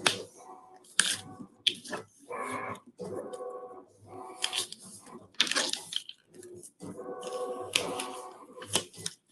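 A plastic sheet crinkles and rustles as it is handled.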